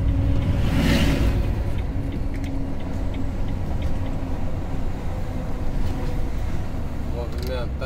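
Tyres roll steadily on asphalt.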